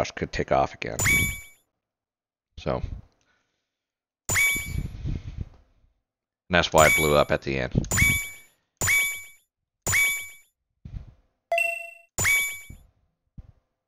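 Electronic menu chimes beep in short bursts.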